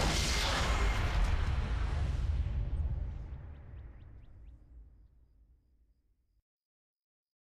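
Fighting sound effects whoosh and crackle, then fade away into silence.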